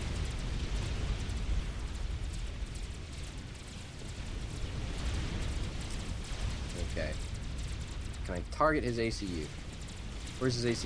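Laser weapons fire and small explosions pop in a space battle.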